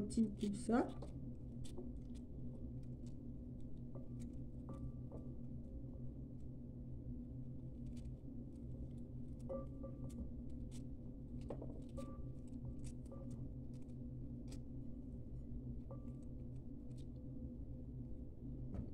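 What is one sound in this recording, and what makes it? Foil wrapping crinkles and rustles as hands unwrap it.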